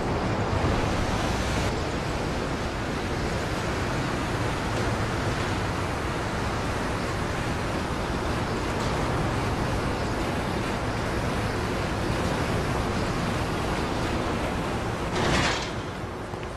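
A cable car rumbles steadily along its cable and comes to a stop.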